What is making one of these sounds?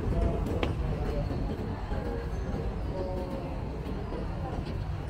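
A crowd of men and women murmurs faintly in the distance.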